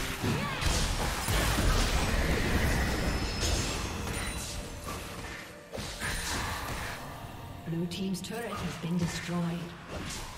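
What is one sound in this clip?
Magic blasts and clashing hits crackle in a busy fantasy battle.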